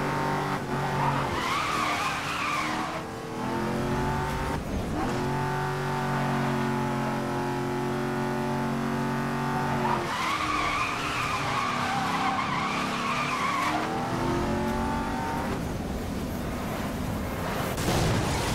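A car engine roars at high speed, rising and falling in pitch.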